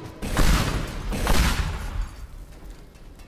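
A helicopter explodes and breaks apart.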